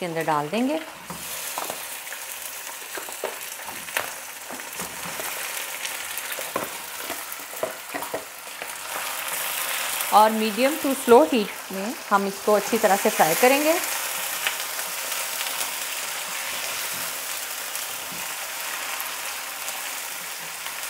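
Meat sizzles and crackles in hot oil.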